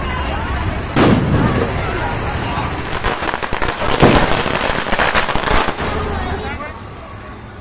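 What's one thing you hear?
Firecrackers bang and crackle loudly outdoors.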